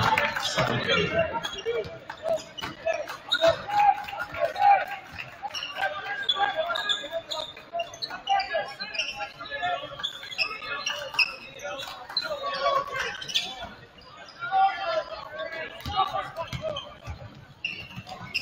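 A crowd murmurs and cheers in a large echoing gym.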